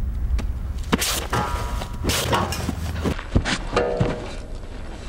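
A young man falls heavily onto grass with a thud.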